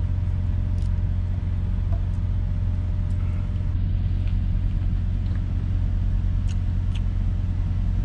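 A paper food tray rustles and crinkles softly.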